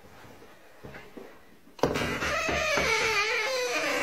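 A door handle clicks and a door opens.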